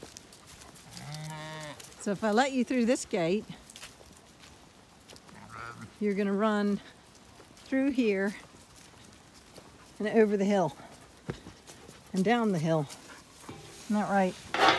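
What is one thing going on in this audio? Sheep bleat loudly nearby, again and again.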